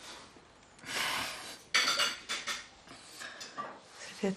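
A man laughs quietly.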